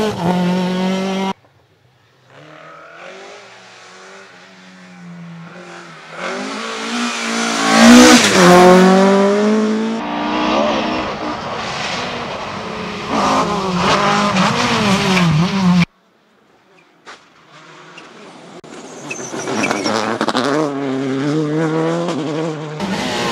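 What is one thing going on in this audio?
Rally car engines roar and rev hard as cars race past.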